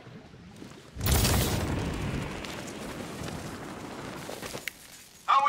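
Wind rushes past during a fast glide.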